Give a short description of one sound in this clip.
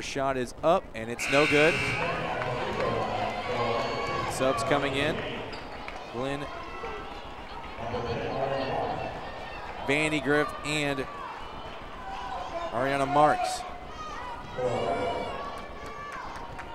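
Spectators shout and cheer loudly in a large echoing hall.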